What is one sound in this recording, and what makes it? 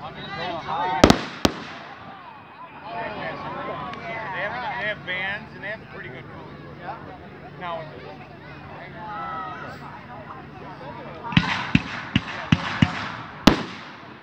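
Fireworks burst with loud, sharp bangs.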